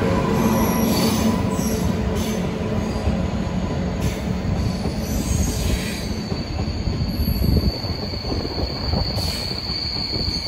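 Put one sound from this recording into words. A train rumbles past on the tracks close by.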